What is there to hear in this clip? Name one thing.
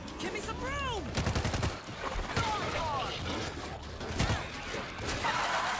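Zombies snarl and shriek close by.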